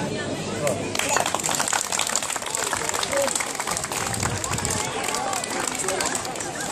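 A crowd claps hands rapidly.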